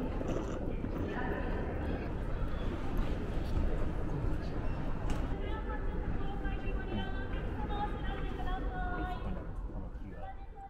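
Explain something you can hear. A low crowd murmur fills a large echoing hall.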